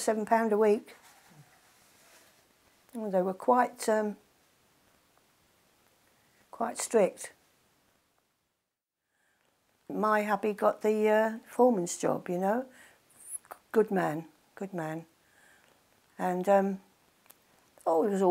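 An elderly woman speaks calmly and slowly, close to a microphone, with pauses.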